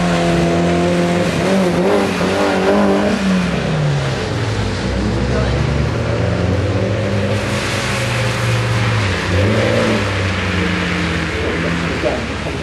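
A car engine revs hard and rises and falls in pitch as the car drifts.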